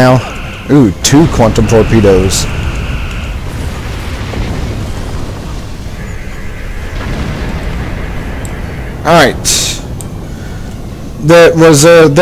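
A spaceship explodes with a deep rumbling boom.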